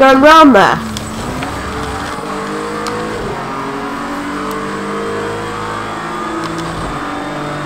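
A racing car engine revs high and climbs in pitch through gear changes.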